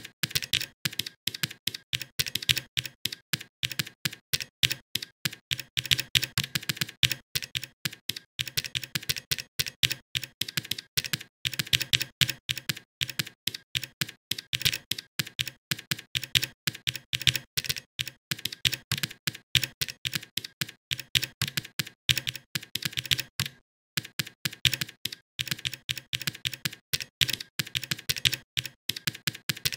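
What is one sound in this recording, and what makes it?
Keys on a keyboard clatter in quick bursts of typing.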